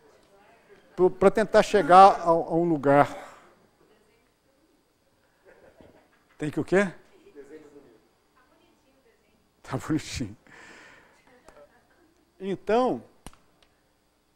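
An elderly man speaks calmly in short bursts.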